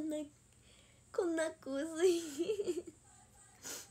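A young woman speaks cheerfully close to a microphone.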